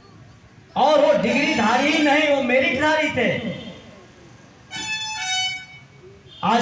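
A man speaks loudly through a microphone and loudspeakers, outdoors.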